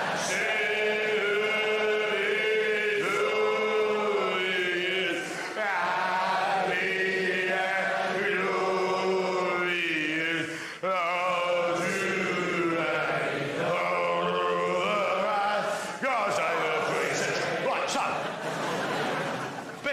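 A man sings powerfully on stage, heard through a speaker.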